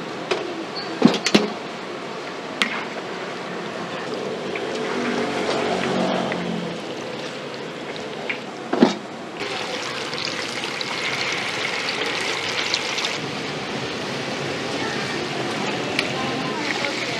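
A metal ladle clanks against a pan.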